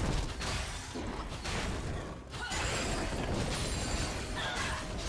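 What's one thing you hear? Game sound effects of spells and strikes crackle and burst.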